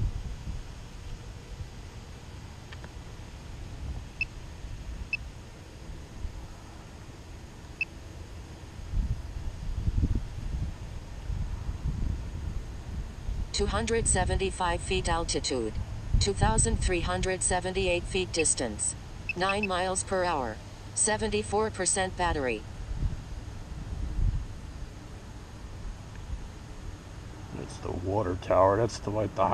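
Wind rumbles and buffets in uneven gusts outdoors.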